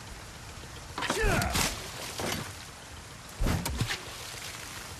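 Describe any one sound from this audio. A harpoon splashes hard into water.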